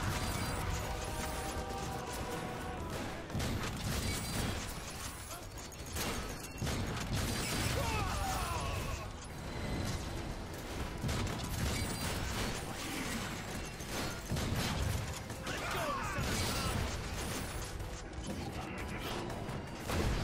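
Shotgun blasts boom and echo in a large hall.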